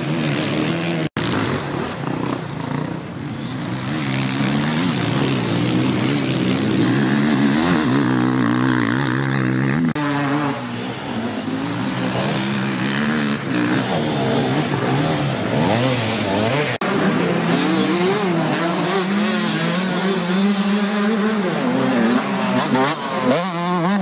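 Dirt bike engines rev loudly, rising and falling in pitch.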